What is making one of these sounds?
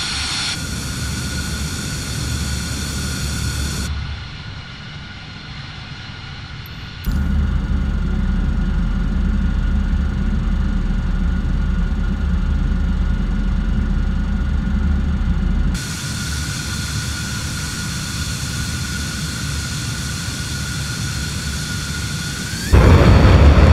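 A jet engine idles with a steady high whine.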